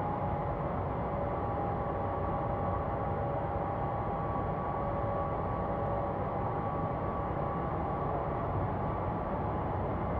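Jet engines roar steadily with a low rumble and a faint whine.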